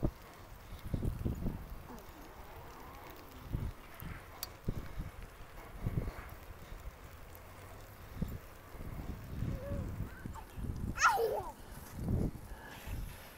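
Wind buffets the microphone in gusts outdoors.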